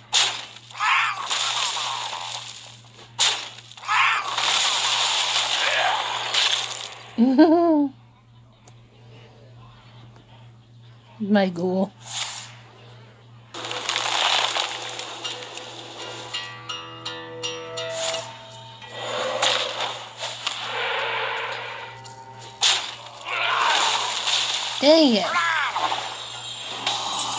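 Crackling, booming fantasy game sound effects burst as spells and attacks strike.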